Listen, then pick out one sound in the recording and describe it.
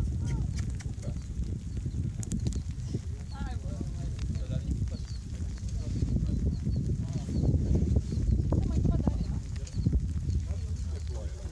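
Wind rumbles and buffets steadily across an open hillside.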